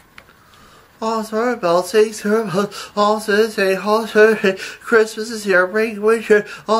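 A man speaks in a high, squeaky puppet voice with animation, close by.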